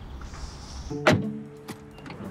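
A car door latch clicks open.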